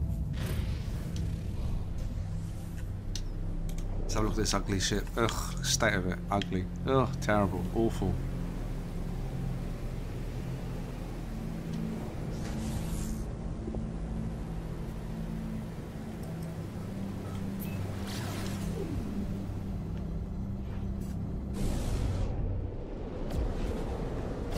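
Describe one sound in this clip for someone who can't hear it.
A spaceship engine drones steadily.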